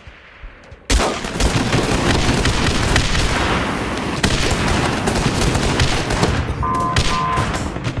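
Flames roar from a flamethrower in a video game.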